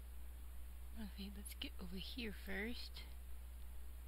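A young woman speaks briefly and calmly close to a microphone.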